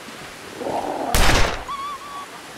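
A metal gate bangs open with a clank.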